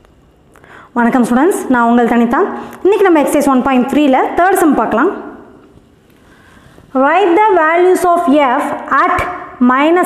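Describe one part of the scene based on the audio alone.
A woman speaks clearly and steadily, close to a microphone.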